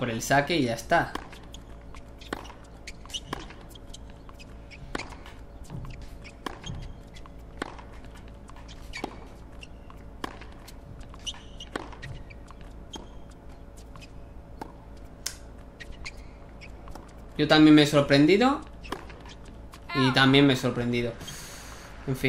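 A tennis ball is hit back and forth with sharp pops of a racket.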